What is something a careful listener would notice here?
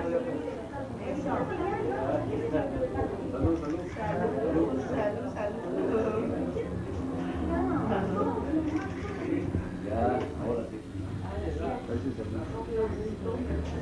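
Men and women chatter and talk over one another close by.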